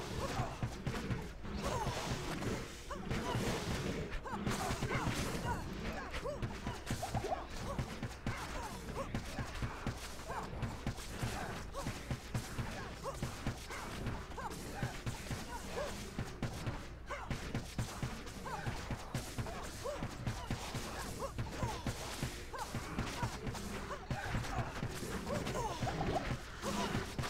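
Magic spells crackle and burst again and again in quick succession.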